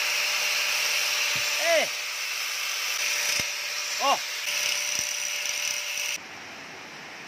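An angle grinder whines loudly, grinding metal.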